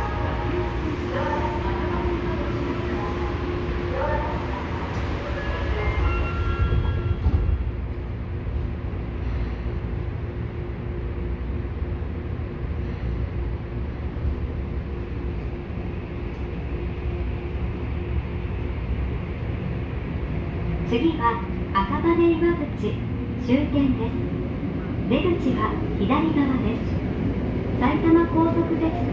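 A train rumbles steadily as it rolls along.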